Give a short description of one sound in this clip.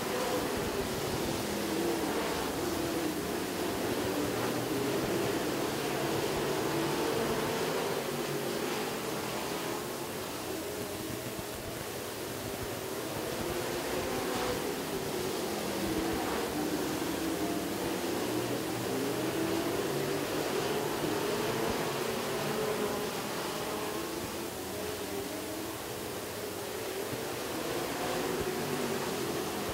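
Race car engines roar loudly as they circle a dirt track.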